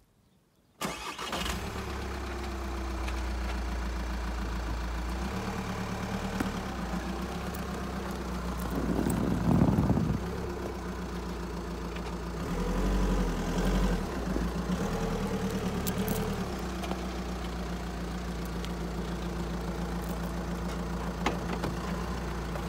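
A vehicle engine hums steadily close by.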